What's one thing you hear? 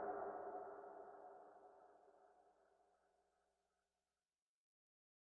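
Music plays from a record and slowly fades away into silence.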